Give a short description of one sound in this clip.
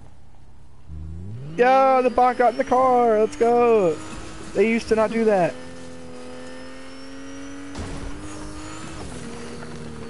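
A car engine revs and roars as it drives.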